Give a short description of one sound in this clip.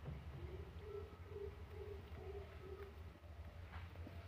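A hand rustles against a parrot's feathers.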